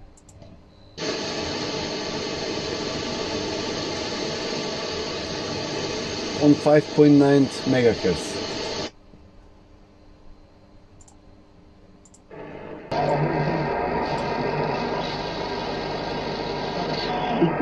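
A radio plays a broadcast through a small loudspeaker.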